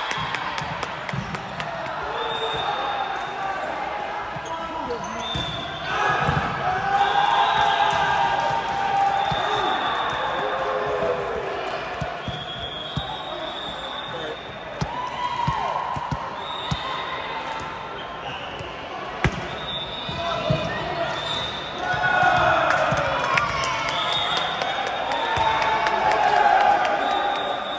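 Young women call out to each other in a large echoing hall.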